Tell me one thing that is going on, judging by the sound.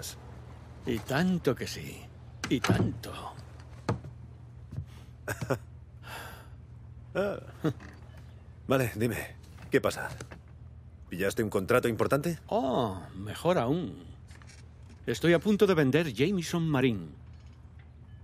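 An older man speaks cheerfully.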